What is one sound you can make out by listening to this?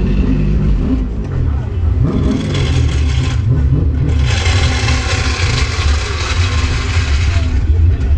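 A race car engine revs up and down sharply.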